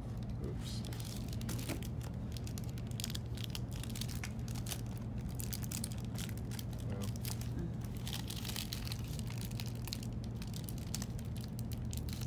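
Pages of a book flutter and crinkle as they are turned.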